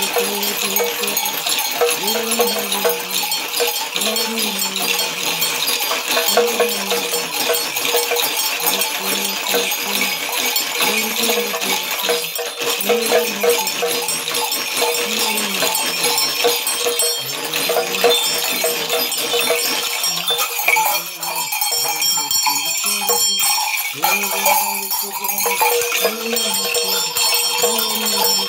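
Bells and jingles on a shaken staff clatter and ring.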